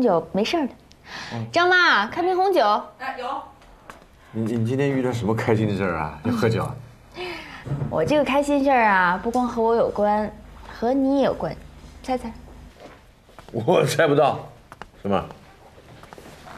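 A middle-aged woman speaks cheerfully and close by.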